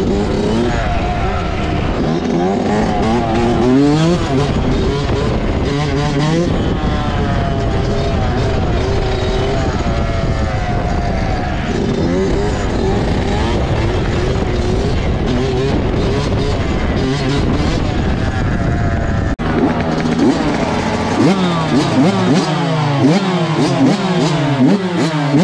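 A dirt bike engine revs up and down loudly and close by.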